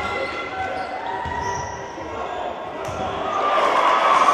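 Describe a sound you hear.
Sneakers squeak sharply on a hard court in an echoing hall.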